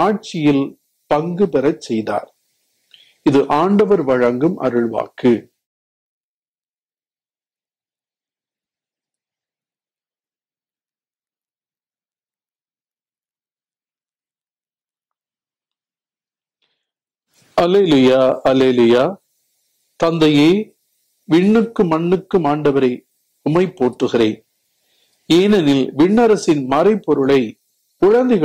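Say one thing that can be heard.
An elderly man reads out calmly through a microphone, with a long pause.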